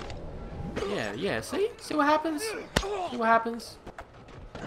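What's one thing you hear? Men grunt and shout while struggling up close.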